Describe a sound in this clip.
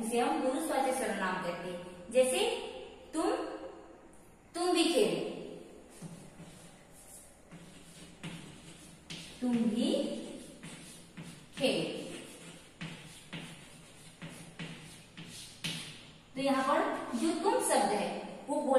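A woman speaks clearly and steadily, like a teacher explaining, close by.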